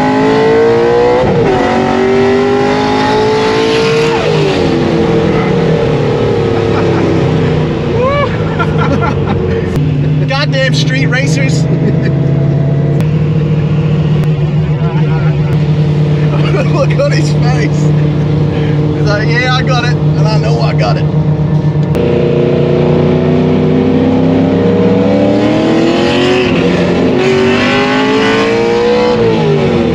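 A car engine roars and revs up and down through the gears.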